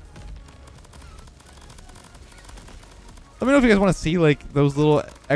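Small guns fire in quick bursts with whooshing shots.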